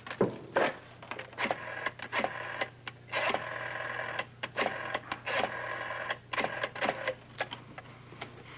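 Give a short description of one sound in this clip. A rotary phone dial whirs and clicks.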